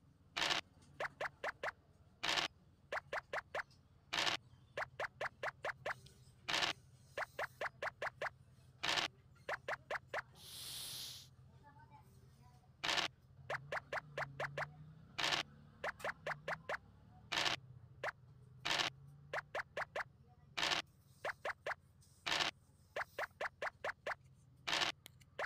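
Dice rattle briefly as they are rolled, again and again.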